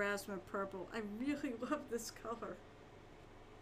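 A woman speaks with animation, close to a microphone.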